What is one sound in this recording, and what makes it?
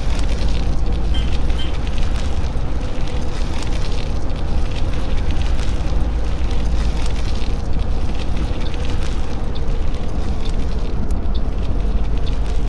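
A bus rattles and bumps over a rough dirt road.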